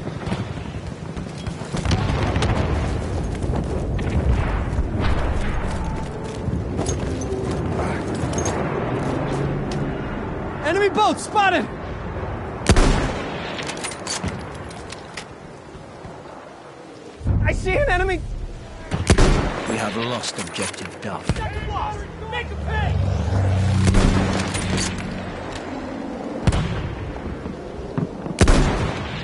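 Gunfire crackles steadily.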